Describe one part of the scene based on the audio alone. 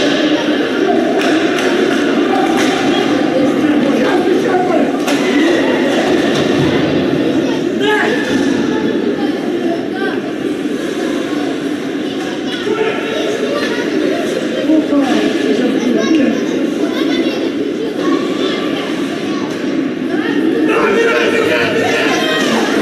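Spectators shout and cheer in an echoing rink.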